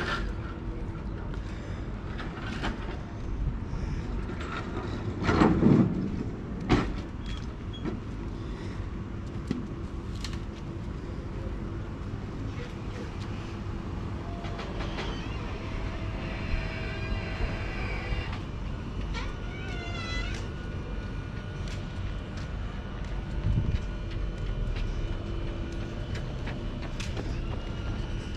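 Footsteps crunch steadily on a paved path outdoors.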